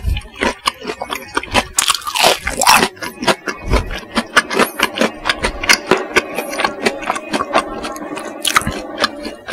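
A man chews crunchy fried food loudly and close to a microphone.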